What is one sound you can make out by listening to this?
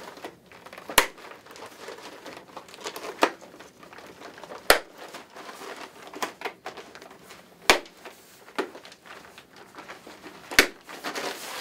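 Small plastic parts click together.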